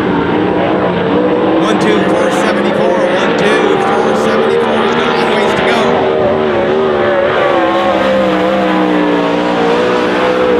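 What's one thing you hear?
A race car engine roars loudly, its pitch rising and falling as it accelerates through a turn.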